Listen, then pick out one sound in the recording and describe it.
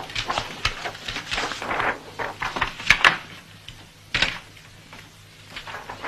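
A window blind is pulled down with a rattle.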